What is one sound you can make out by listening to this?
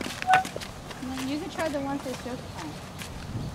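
A woman speaks close by in a calm voice.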